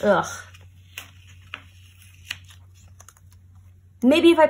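A sticker peels off its backing sheet.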